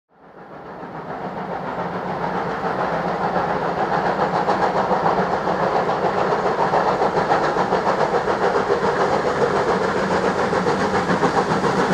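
A steam locomotive chuffs hard as it pulls a train.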